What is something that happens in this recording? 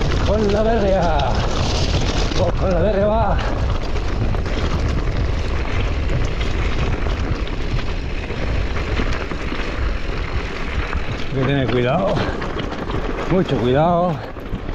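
Bicycle tyres crunch and rattle over a rocky trail.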